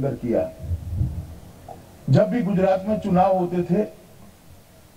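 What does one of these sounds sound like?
A middle-aged man speaks firmly into a microphone.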